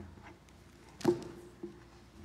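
A book thumps as an elderly man lifts it.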